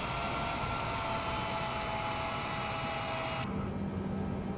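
Jet engines whine loudly and steadily outside an airliner.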